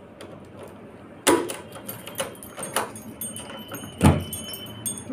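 Keys jingle and a metal padlock clicks against a latch.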